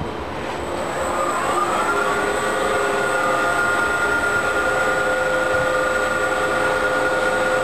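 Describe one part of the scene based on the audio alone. A lift machine starts up and whines, rising in pitch to a steady drone.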